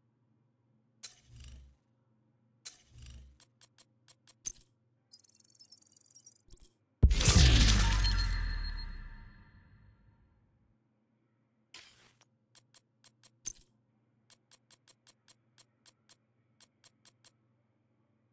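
Short soft clicks tick as menu selections change.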